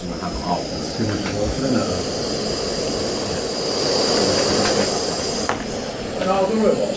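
A gas stove burner roars steadily.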